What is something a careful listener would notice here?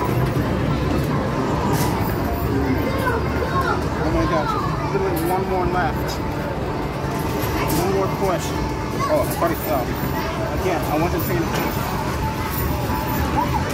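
Arcade machines play bright electronic jingles and chirps in a noisy hall.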